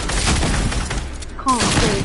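Gunshots fire in a rapid burst.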